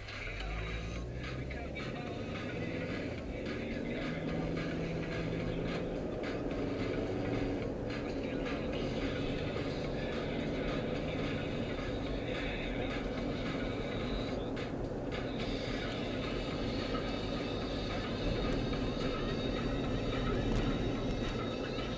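Tyres roll on the road with a steady low rumble.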